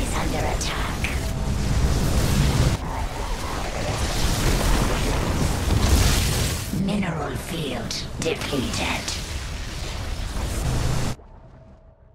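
Creatures screech and explosions crackle in a fast video game battle.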